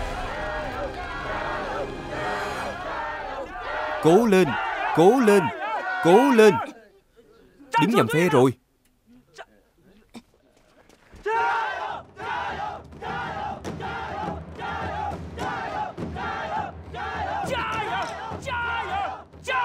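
A crowd of men chants and cheers in a steady rhythm.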